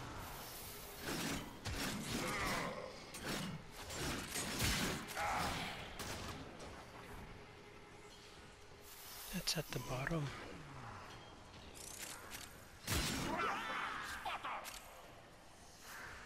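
Heavy blades slash and clang against metal in rapid bursts.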